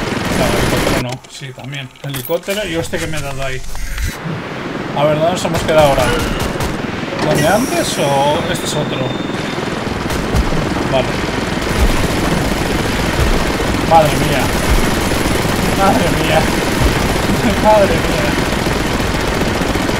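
A helicopter's machine gun fires in rapid bursts.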